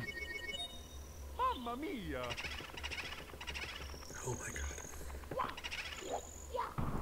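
A young man talks casually, close to a microphone.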